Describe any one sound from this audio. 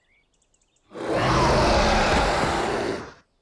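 A cartoon dragon tumbles to the ground with a noisy crash.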